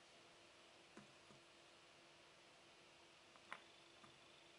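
A jigsaw puzzle piece clicks softly onto a table.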